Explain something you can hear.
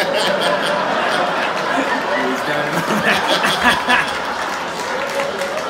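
A young man laughs loudly nearby.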